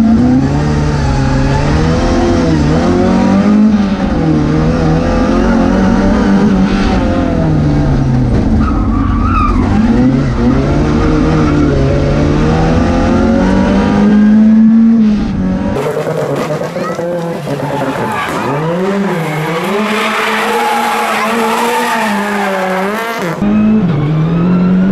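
A racing car engine roars loudly from inside the cabin, revving up and down with gear changes.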